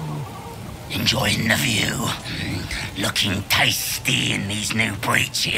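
A goblin man speaks in a rough, gravelly voice.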